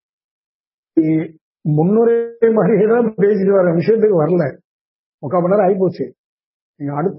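An older man speaks calmly into a close microphone.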